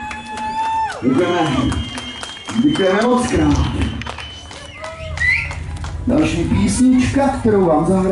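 A man sings loudly into a microphone over loudspeakers.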